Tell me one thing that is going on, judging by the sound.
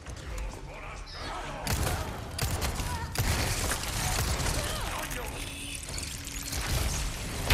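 A woman shrieks and growls as she charges.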